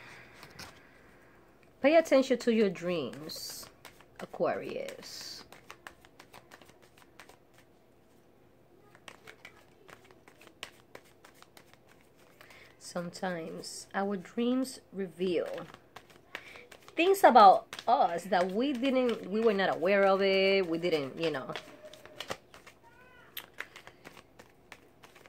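Playing cards rustle and flick as they are shuffled.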